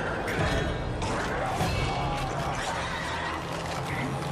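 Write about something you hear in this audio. A man growls and snarls up close.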